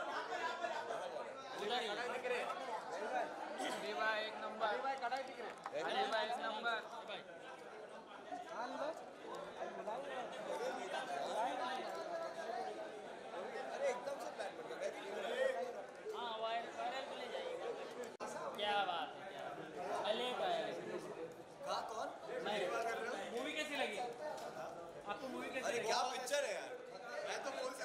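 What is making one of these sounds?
A crowd chatters loudly all around.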